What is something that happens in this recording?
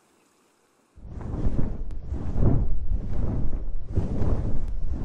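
Wind gusts loudly while a creature flies.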